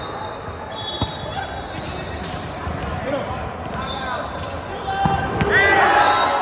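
A volleyball smacks against hands.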